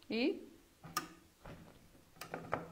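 A hand press clunks down with a sharp metal snap.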